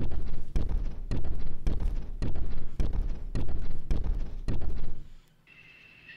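Footsteps walk steadily down a hard corridor.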